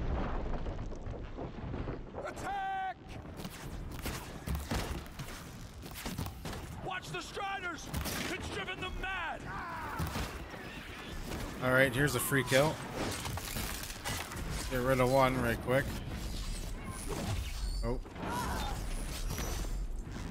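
A bowstring twangs as arrows fly.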